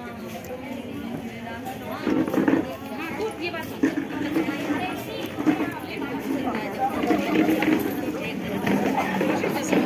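A crowd of women chatter and talk over one another nearby.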